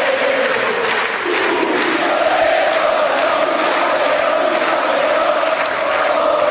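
A large crowd chants and cheers together.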